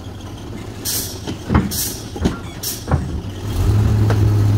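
Metal clanks and bangs as a hook arm grabs a bin.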